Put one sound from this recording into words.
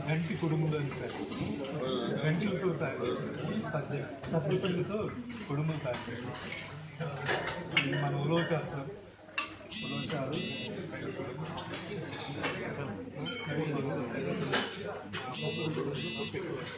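A crowd of men and women chats nearby.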